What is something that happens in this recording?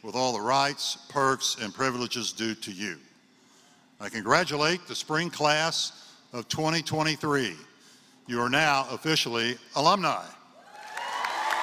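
A man speaks calmly into a microphone, his voice carried through loudspeakers in a large hall.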